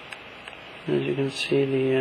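A stylus taps lightly on a touchscreen.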